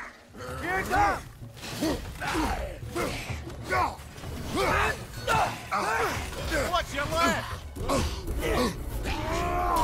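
Weapons clash and thud in a close fight.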